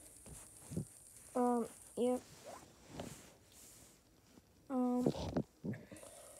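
A plastic toy figure rustles and bumps against a soft blanket.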